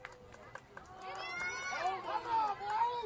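A crowd cheers as a play unfolds.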